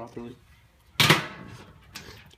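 A metal lid clanks against a grill.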